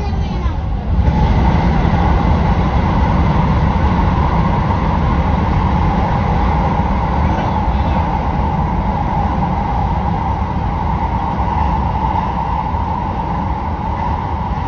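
A train's roar swells louder and booms as it enters a tunnel.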